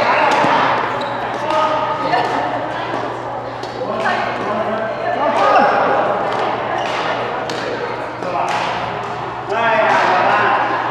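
Several people talk and call out in a large echoing hall.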